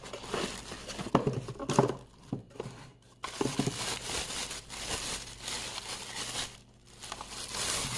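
A plastic bag crinkles and rustles as it is handled.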